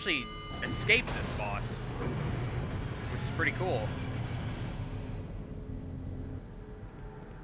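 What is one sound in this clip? An elevator's machinery hums and rumbles low.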